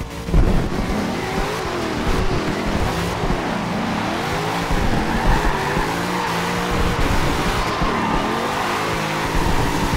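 A car engine revs hard and whines up and down through the gears.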